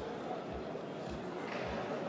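A young man claps his hands.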